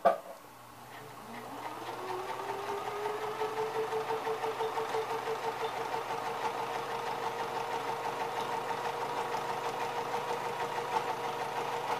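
A sewing machine hums steadily as it stitches.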